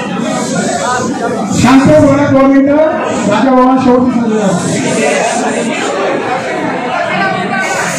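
A large crowd of men sings or chants together.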